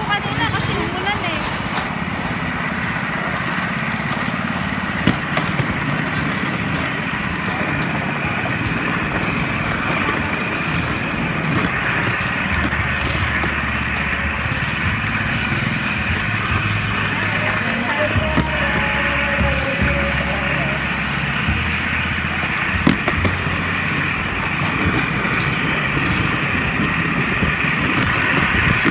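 A small motorized rail cart rumbles steadily along the tracks.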